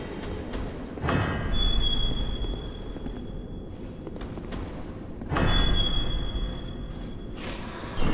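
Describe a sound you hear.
A heavy door scrapes and creaks open with a metallic ring.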